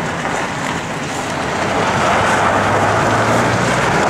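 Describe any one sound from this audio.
Horse hooves step slowly on gravel.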